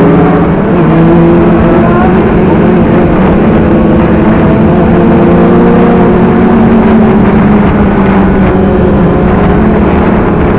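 Other motorcycle engines hum and rev nearby.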